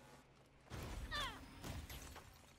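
A bright chime rings out as an item is picked up.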